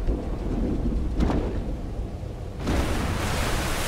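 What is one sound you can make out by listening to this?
A heavy metal cage rumbles and clanks as it moves.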